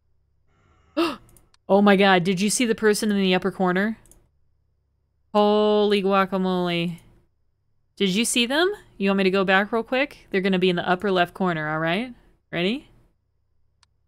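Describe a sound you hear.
A young woman talks through a microphone.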